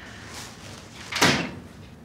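A door clicks shut.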